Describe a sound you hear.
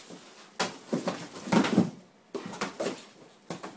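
Cardboard rustles and tears as a dog tugs at it.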